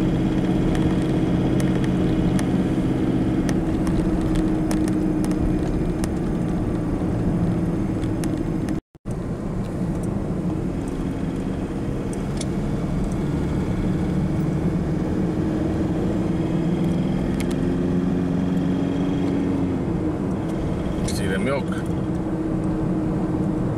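Tyres roll and rumble on the road.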